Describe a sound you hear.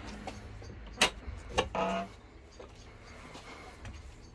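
A hand knocks and bumps against wood close by.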